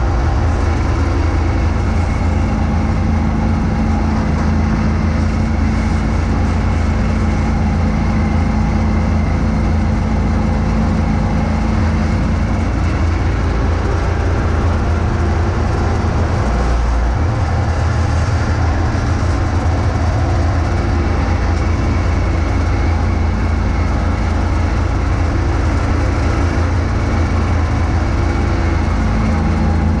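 A snow blower whirs and throws snow in a steady rush.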